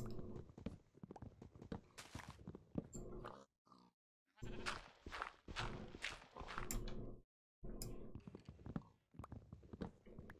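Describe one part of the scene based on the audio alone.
A shovel digs into dirt with short crunching scrapes.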